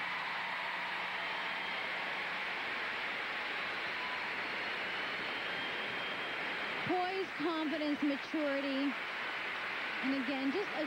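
A large crowd applauds and cheers in a big echoing arena.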